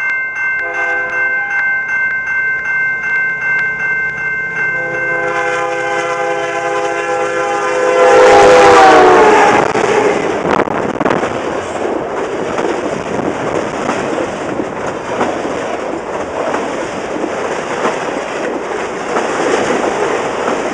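A crossing bell rings in rapid, steady strokes.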